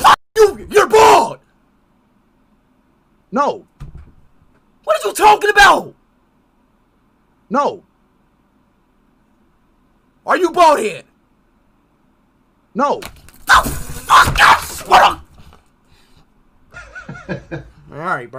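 A young man shouts and yells excitedly through a microphone in short bursts.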